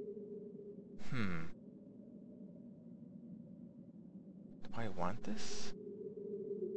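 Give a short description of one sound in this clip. A short chime sounds as a menu option is selected.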